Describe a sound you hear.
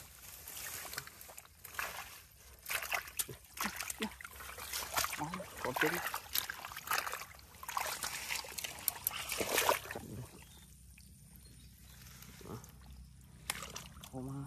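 Fish flap and wriggle in wet mud.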